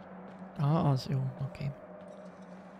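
A young man speaks briefly and with animation into a close microphone.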